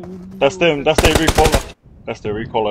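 Gunfire bursts out in quick, loud shots.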